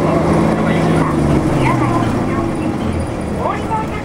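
A car engine hums and slows in pitch.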